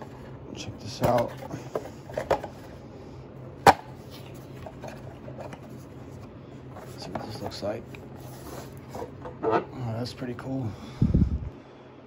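Cardboard packaging rustles and scrapes as hands open a box.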